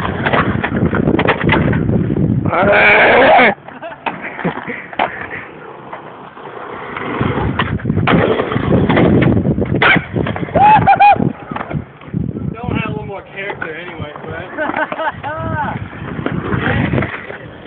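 A skateboard clatters against the ground.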